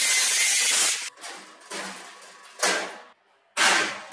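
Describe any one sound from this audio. A sheet of metal clanks and rattles as it is lifted.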